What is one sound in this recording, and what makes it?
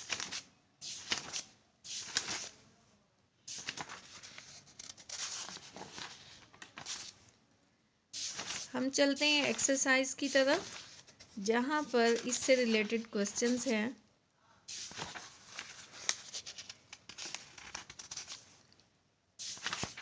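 Paper pages rustle and flip as a notebook is leafed through.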